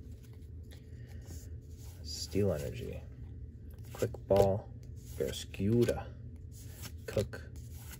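Trading cards slide and flick against each other as they are flipped through by hand.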